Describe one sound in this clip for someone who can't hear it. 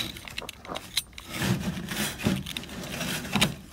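A utility knife slices through thick foam with a soft scratching sound.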